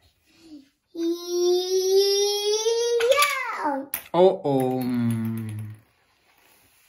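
A young boy sings out loudly in long, high drawn-out notes nearby.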